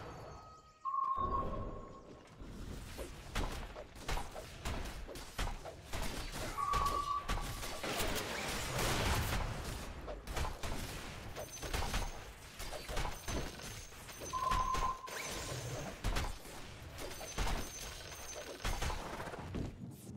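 Fighting figures clash and strike with sharp hits and bursts.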